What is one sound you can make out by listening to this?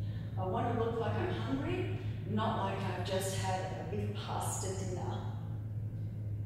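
A woman speaks calmly in an echoing room.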